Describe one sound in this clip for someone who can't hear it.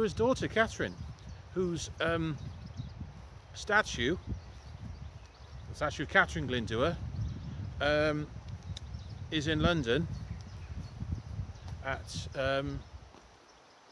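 A man speaks close up in short, animated bursts.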